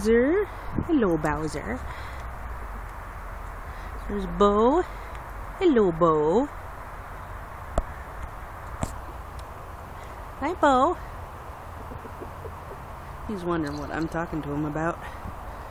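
A rooster calls out loudly again and again, close by.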